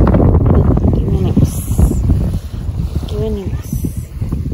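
A toddler girl babbles briefly nearby.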